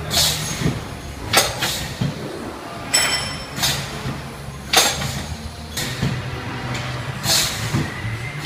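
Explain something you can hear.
An automatic tray filling and sealing machine runs with a steady mechanical hum.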